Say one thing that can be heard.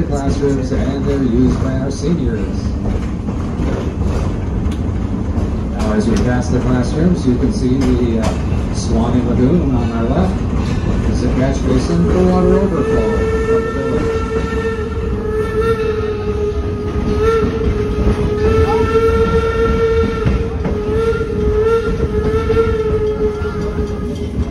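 A train car rumbles and clatters along the track.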